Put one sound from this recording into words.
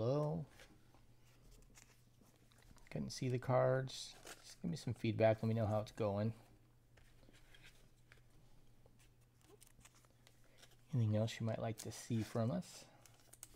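Trading cards shuffle and rustle in hands.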